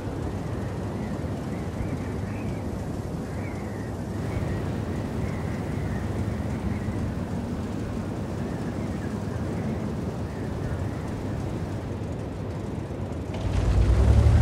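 A heavy tank engine idles with a low, steady rumble.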